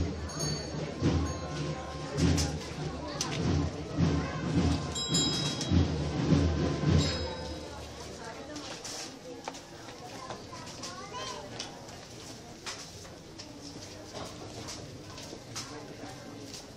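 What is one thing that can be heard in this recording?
A crowd of men and women chatter all around.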